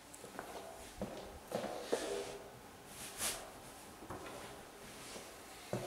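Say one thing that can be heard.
A bed sheet rustles softly as it is smoothed and tugged.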